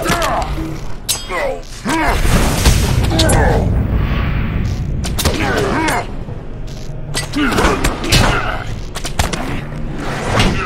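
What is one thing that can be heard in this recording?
A creature screeches in sharp, wavering cries.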